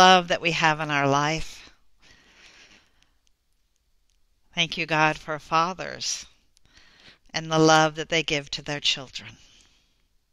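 A woman speaks calmly and softly into a headset microphone, pausing between phrases.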